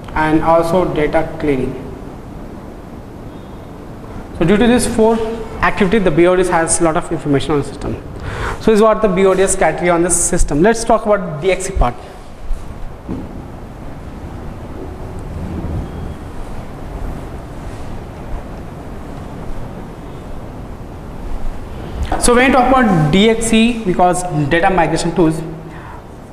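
A young man lectures calmly into a close clip-on microphone.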